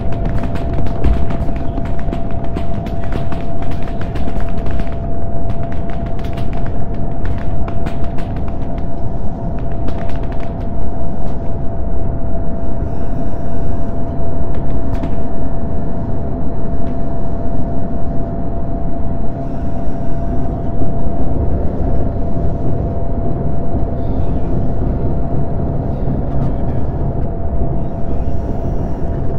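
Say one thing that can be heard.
A fighter jet's engine roars and whines, heard from inside the cockpit.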